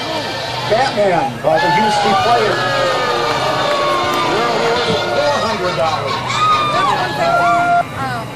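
A young woman sings into a microphone over a loudspeaker.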